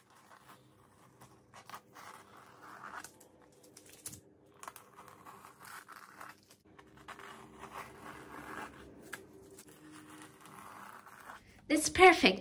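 Masking tape peels off with a soft tearing rustle.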